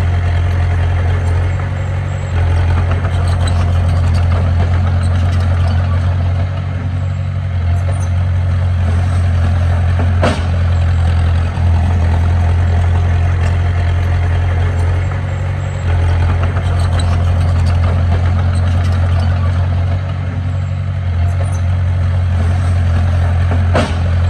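A small bulldozer engine rumbles steadily nearby, rising and falling as it works.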